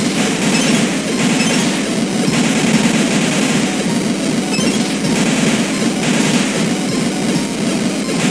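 Retro video game music plays steadily with a chiptune beat.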